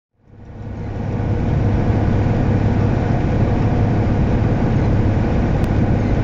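A vehicle rumbles steadily as it drives along a road.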